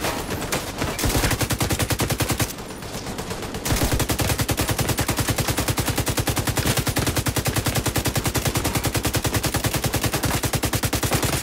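A rifle fires in rapid automatic bursts.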